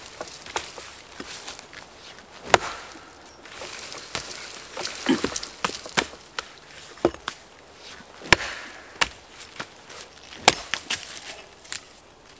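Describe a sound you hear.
A hatchet chops sharply into a birch log.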